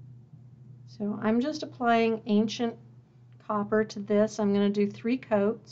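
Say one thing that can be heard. A woman talks calmly and closely into a microphone.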